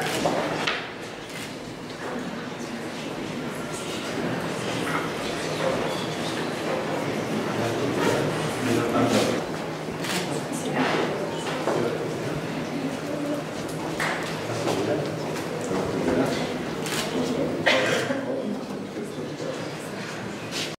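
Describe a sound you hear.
A crowd applauds steadily in a large hall.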